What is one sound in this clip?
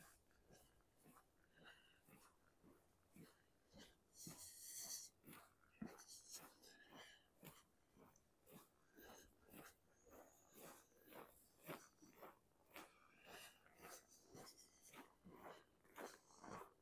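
Footsteps crunch steadily on packed snow.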